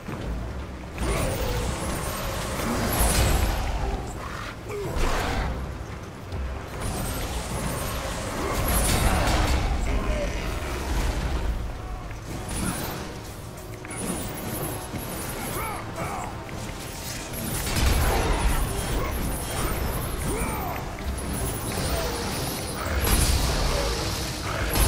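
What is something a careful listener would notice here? Heavy blows crash and boom.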